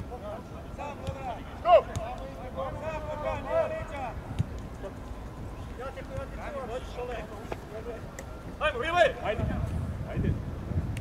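Players shout to each other across an open pitch.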